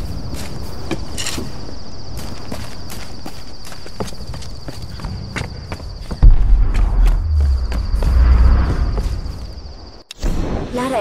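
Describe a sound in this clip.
Footsteps crunch over leaves and wooden boards.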